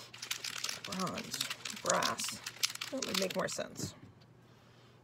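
Paper scraps rustle and crinkle close by.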